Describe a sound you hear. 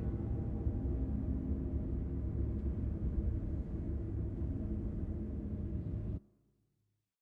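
A huge drill machine rumbles with a deep, steady roar, then cuts off abruptly.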